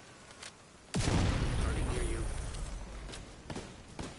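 An explosion booms and rumbles slowly away.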